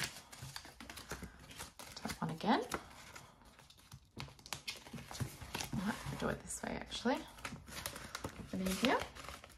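Plastic sleeves crinkle and rustle as pages turn.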